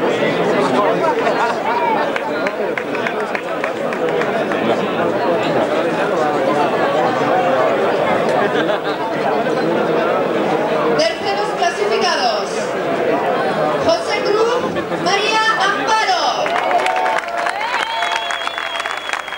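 Men nearby talk loudly over the crowd.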